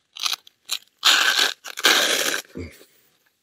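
Velcro rips as a pouch flap is pulled open.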